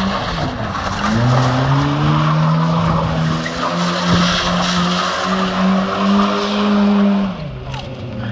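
Tyres screech and squeal on tarmac.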